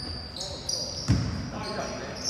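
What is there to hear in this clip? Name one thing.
A basketball bounces with a thud.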